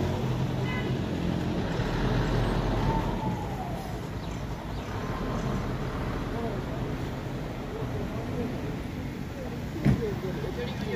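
Traffic rumbles steadily along a road outdoors.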